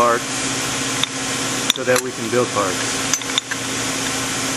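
Metal blocks clink and knock together as they are set in place.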